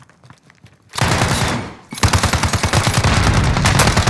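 Rapid gunfire rattles in loud bursts.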